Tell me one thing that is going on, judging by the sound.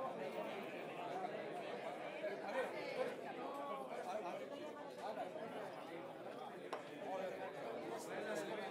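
A live blues band plays.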